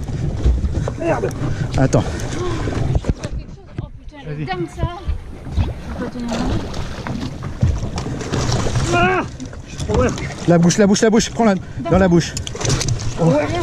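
A man talks excitedly close by.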